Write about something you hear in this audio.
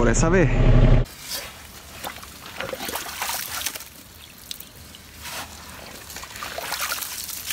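Water trickles into a muddy trench.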